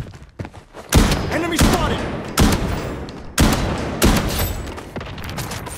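A rifle fires loud bursts of shots close by.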